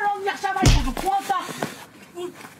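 A woman shouts angrily nearby.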